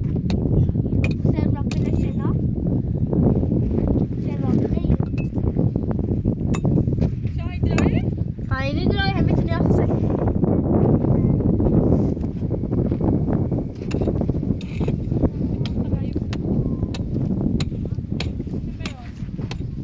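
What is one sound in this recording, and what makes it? A pickaxe strikes hard dirt again and again.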